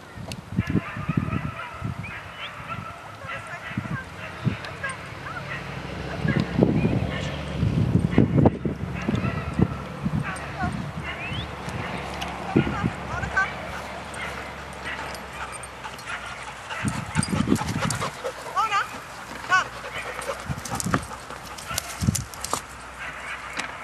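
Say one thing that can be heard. Puppies yip and whine as they play.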